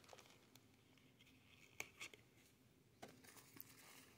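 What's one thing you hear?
Paper and cardboard rustle and tap.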